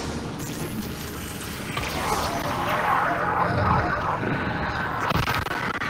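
A monster growls and screeches nearby.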